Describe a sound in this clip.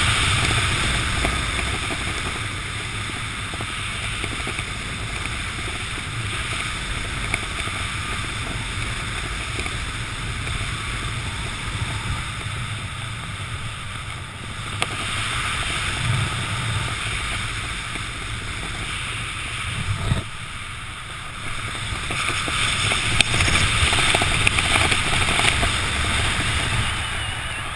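Wind rushes and buffets loudly past a parachutist descending outdoors.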